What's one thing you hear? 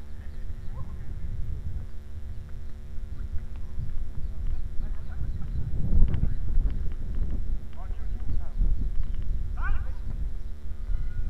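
Young men shout to each other from across an open field.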